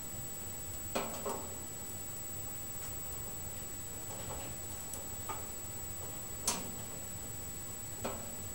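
Burning wood crackles and pops now and then.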